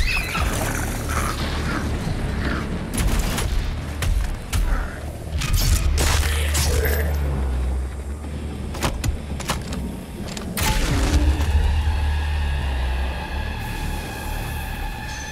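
A deep pounding music plays throughout.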